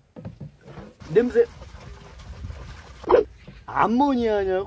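Liquid pours and splashes into a plastic tub.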